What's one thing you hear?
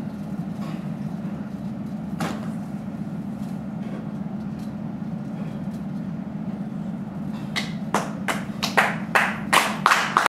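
A body slides and brushes across a wooden floor.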